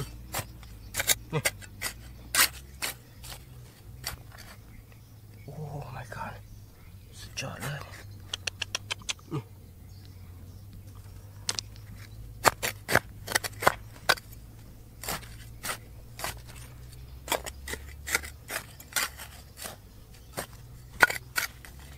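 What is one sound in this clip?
A metal trowel scrapes and digs into dry, stony soil.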